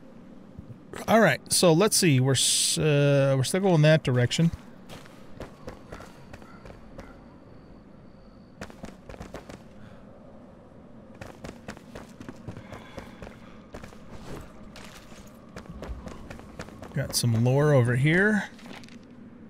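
An older man speaks with animation through a microphone.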